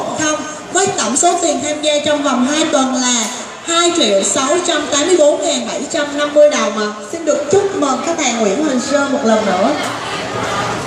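A young woman speaks with animation through a microphone and loudspeaker.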